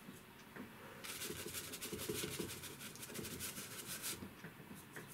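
A stiff brush scrubs and swishes across rough paper.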